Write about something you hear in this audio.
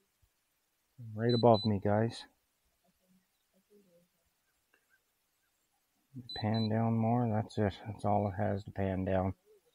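A man talks calmly and close to a microphone, in two short spells.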